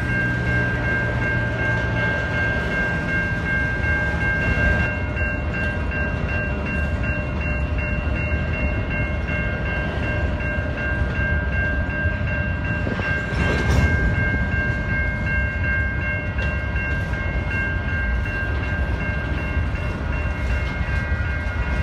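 A railway crossing bell rings steadily and close by.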